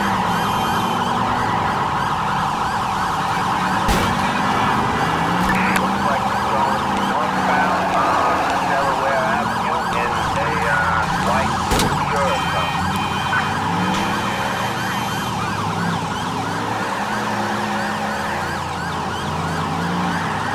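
A car engine revs and hums steadily.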